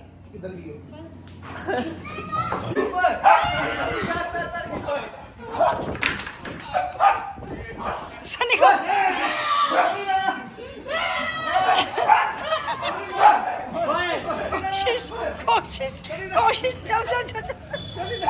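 Several young men shout and laugh loudly.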